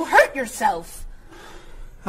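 A woman speaks with concern.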